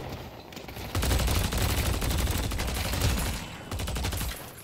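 Rapid gunfire crackles in a video game.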